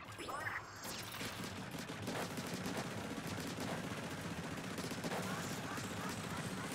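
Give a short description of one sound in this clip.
Squishy splattering shots fire rapidly.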